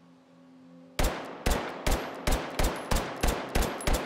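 A gun fires a rapid string of loud, regular shots.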